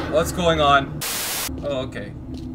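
A burst of loud static hisses briefly.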